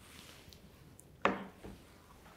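Something is set down on a wooden table with a knock.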